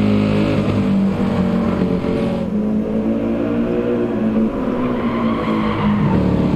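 A racing car engine roars at high revs, shifting pitch through the gears.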